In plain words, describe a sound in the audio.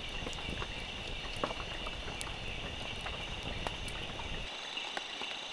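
A wood fire crackles and pops up close.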